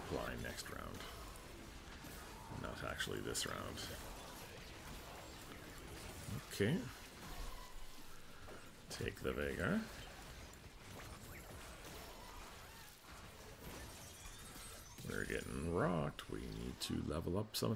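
Magical combat effects clash, zap and whoosh in quick bursts.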